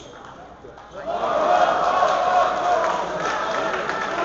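A crowd cheers and claps loudly after the rally.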